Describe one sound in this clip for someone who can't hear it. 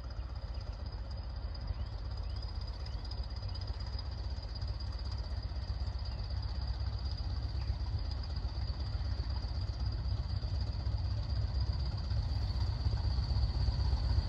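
A distant train approaches with a low rumble that slowly grows louder.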